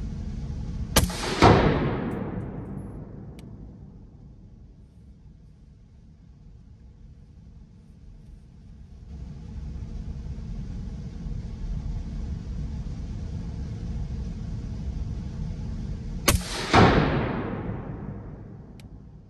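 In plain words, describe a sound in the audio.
A rifle fires a loud shot that echoes in an enclosed room.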